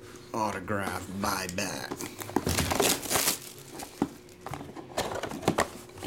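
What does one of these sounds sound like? A cardboard box slides and scrapes against other boxes.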